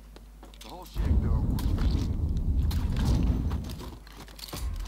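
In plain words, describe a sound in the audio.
Gunshots ring out loudly in an echoing room.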